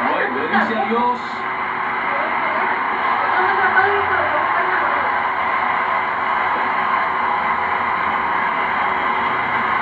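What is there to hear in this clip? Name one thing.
A large stadium crowd murmurs and cheers through a television speaker.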